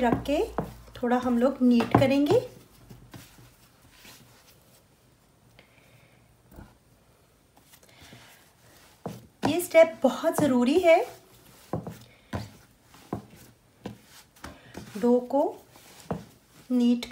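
Hands knead and slap soft dough on a wooden board.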